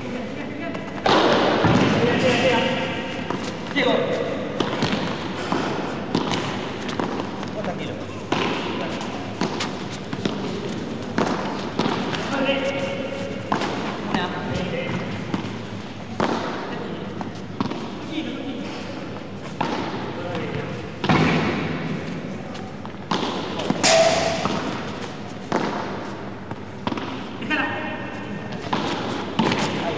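Paddle rackets strike a ball with sharp pops.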